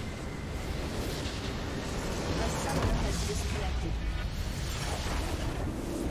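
A structure explodes and crumbles with a deep rumble.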